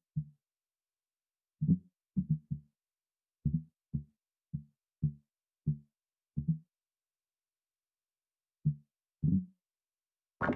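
Soft menu clicks tick as options are selected.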